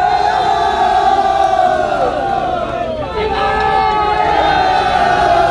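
A large crowd of men talks and calls out loudly outdoors.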